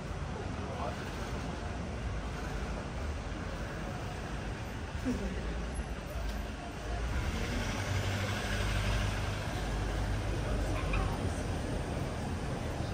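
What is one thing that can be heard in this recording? Street traffic hums steadily nearby, outdoors.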